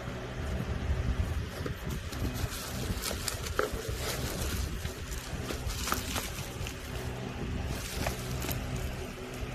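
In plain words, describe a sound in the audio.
Cardboard boxes scrape and rustle as they are moved.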